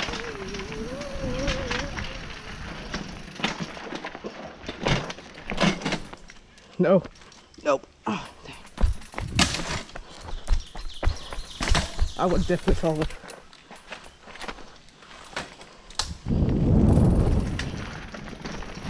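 Bicycle tyres crunch and rattle over rocky dirt.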